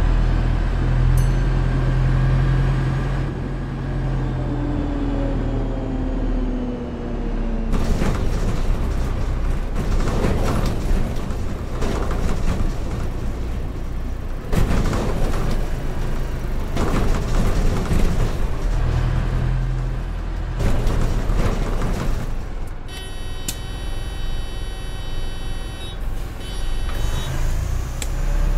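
A bus engine rumbles steadily, rising and falling in pitch as it drives.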